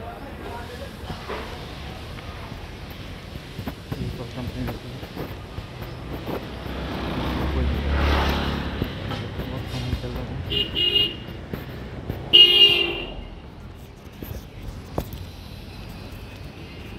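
Traffic hums steadily outdoors on a street.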